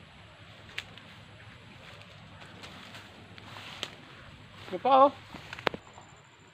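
Footsteps rustle through dense grass and brush.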